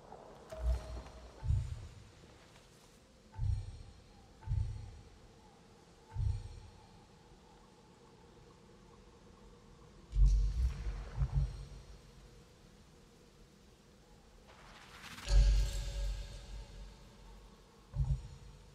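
Soft, deep menu chimes and whooshes sound now and then as options are picked.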